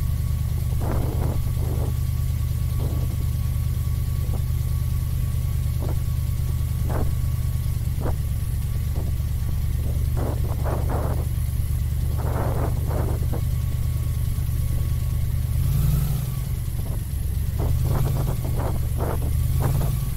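An airboat engine and propeller drone steadily and loudly close by.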